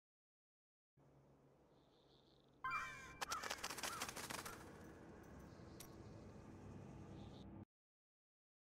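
Spell effects whoosh and crackle.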